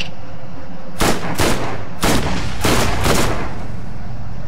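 Gunfire from a game cracks several times in quick succession.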